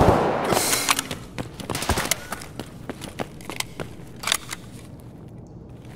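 Footsteps crunch on a gritty concrete floor.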